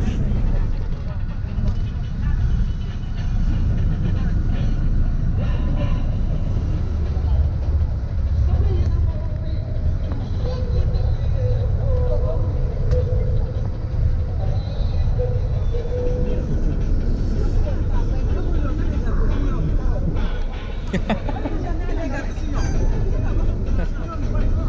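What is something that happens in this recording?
A minibus engine rumbles steadily as it drives.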